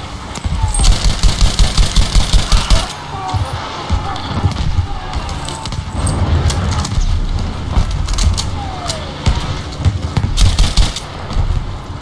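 A machine gun fires rapid, loud bursts.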